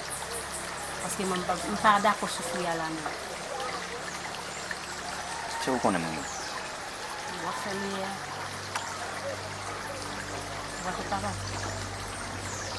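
A young woman speaks quietly nearby, outdoors.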